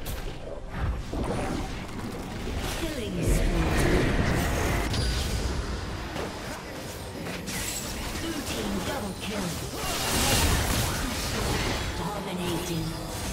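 Magic blasts and clashing weapon sounds burst out in a busy video game battle.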